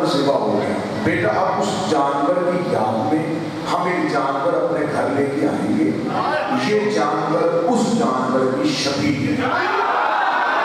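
A man speaks with animation into a microphone, heard through a loudspeaker in an echoing hall.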